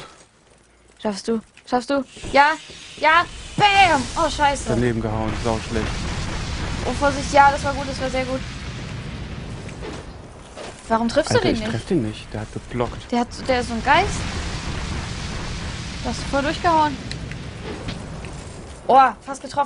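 A young woman exclaims excitedly, close to a microphone.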